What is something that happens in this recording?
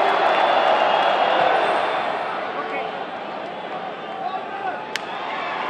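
A large stadium crowd roars and cheers, then slowly dies down.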